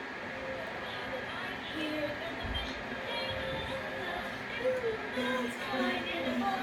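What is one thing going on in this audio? A young girl sings close by.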